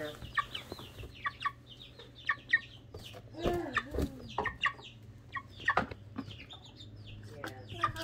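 A chicken pecks at a balloon with soft taps.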